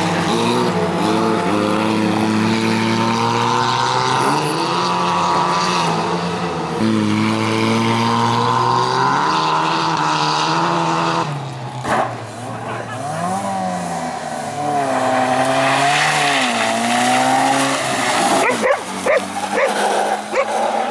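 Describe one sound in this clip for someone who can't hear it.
A car engine revs hard and roars up and down as a car races past.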